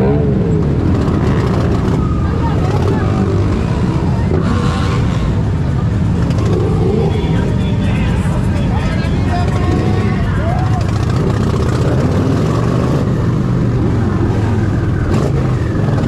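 A crowd of people chatters and cheers along the street.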